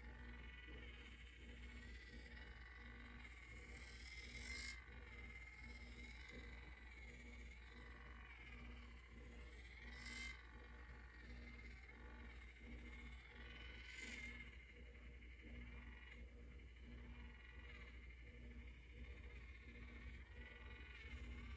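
A small handheld facial device hums softly against skin.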